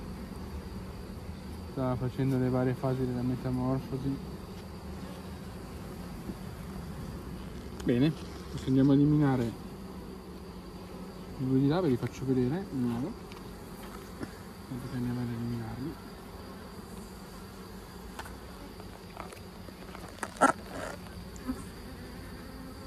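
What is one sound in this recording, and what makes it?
Bees buzz steadily.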